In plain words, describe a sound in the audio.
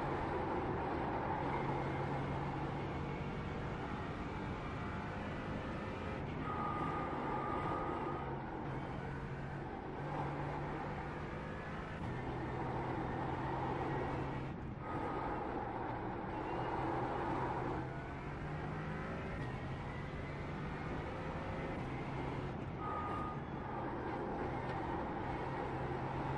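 A racing car engine roars steadily, rising and falling in pitch as it shifts gears.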